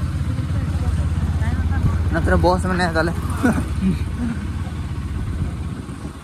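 Another motorcycle passes close by.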